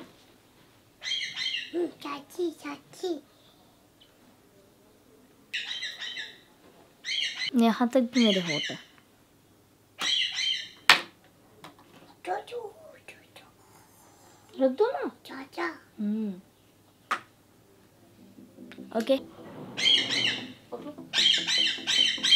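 A toddler babbles and squeals in high-pitched bursts.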